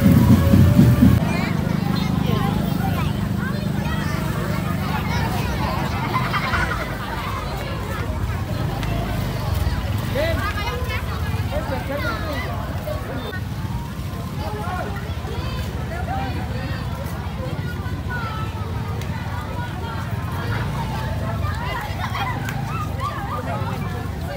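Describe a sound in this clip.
Motorbike engines idle and rumble close by.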